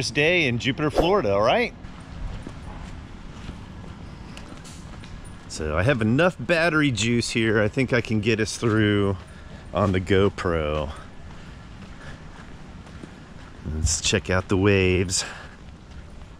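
A middle-aged man talks calmly close to the microphone.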